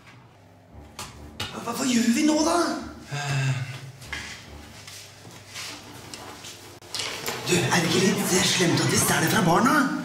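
A man speaks with animation up close.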